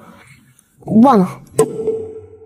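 A young woman speaks briefly and sharply.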